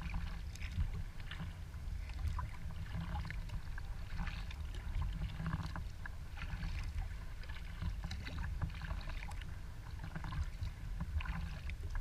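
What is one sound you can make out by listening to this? Water laps and splashes against a kayak's hull.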